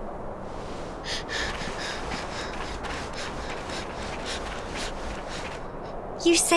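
Footsteps patter on a dirt path.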